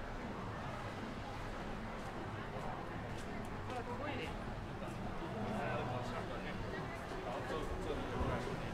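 Distant city traffic hums outdoors.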